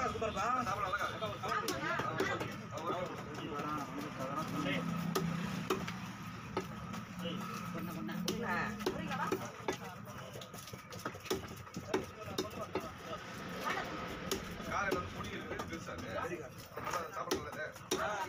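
A knife chops through fish on a wooden block with sharp knocks.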